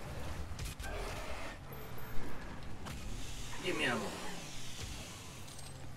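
Flesh squelches and tears in a brutal melee kill.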